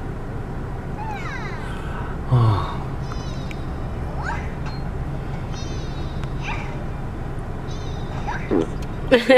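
A newborn baby coos softly up close.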